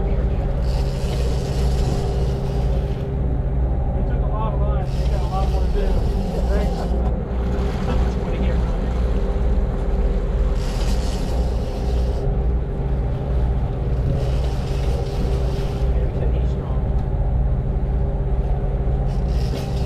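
Water churns and splashes in a boat's wake.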